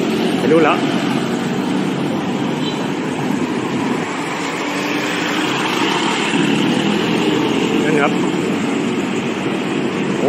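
Motor scooters pass close by.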